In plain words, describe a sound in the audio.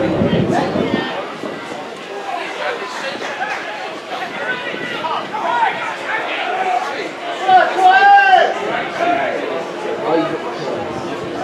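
Men shout across an open pitch.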